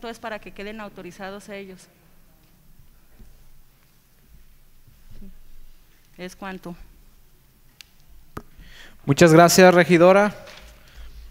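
A woman speaks into a microphone in short bursts, calmly.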